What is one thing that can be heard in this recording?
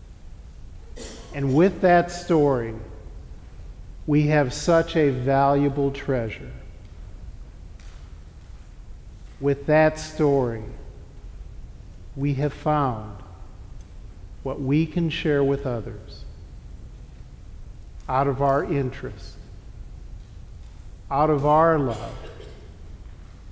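A middle-aged man chants slowly into a microphone in an echoing hall, in phrases with pauses between them.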